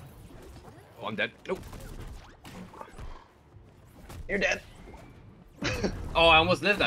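Punches and blows land with sharp thuds and cracks in a fighting game.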